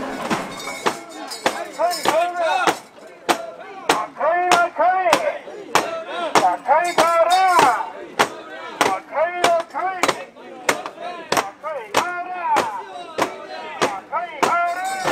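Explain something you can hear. A crowd of men chants loudly and rhythmically outdoors.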